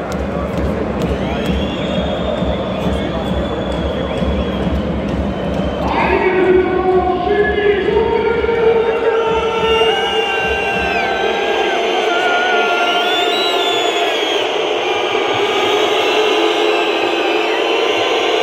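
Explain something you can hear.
Basketball shoes squeak sharply on a hardwood court.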